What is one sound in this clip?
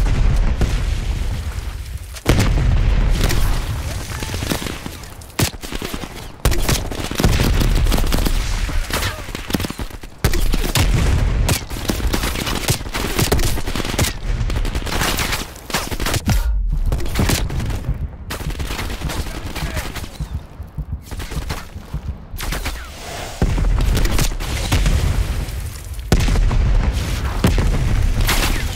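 Rifle shots crack sharply again and again.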